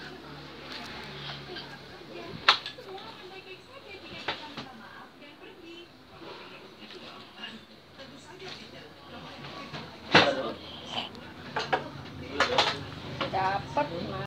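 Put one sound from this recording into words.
Voices play from a television nearby.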